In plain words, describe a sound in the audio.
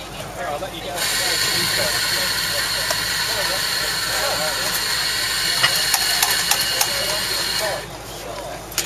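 A coffee grinder whirs loudly and steadily.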